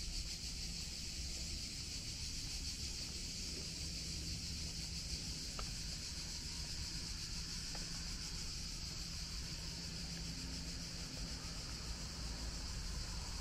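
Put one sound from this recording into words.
Wind blows outdoors, rumbling steadily.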